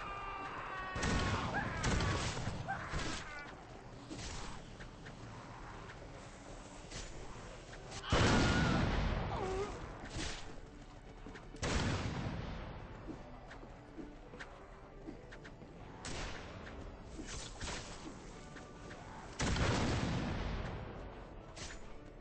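Explosions boom and rumble several times.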